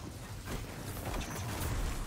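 A heavy blow strikes with a crunching impact.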